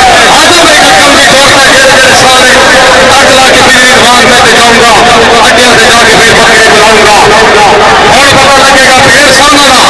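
A large outdoor crowd chatters and murmurs.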